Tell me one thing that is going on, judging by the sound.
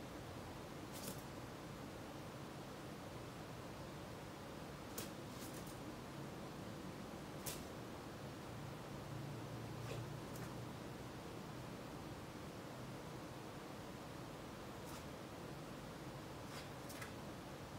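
Small dogs' claws click and tap on a wooden floor.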